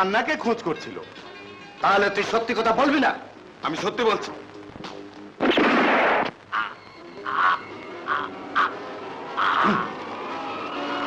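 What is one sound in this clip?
A man speaks tensely, close by.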